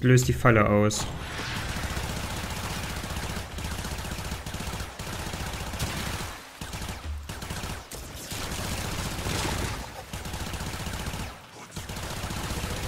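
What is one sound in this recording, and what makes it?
Gunfire and energy weapons crackle and blast in quick bursts.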